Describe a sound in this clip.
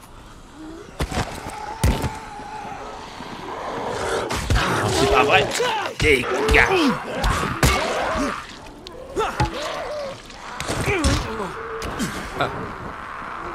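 Heavy blows thud against bodies.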